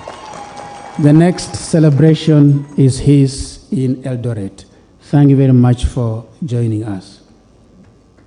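A man speaks loudly through a microphone in a large echoing hall.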